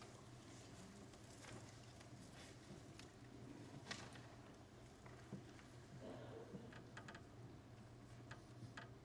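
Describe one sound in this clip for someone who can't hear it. An audience murmurs quietly and shifts in pews in an echoing hall.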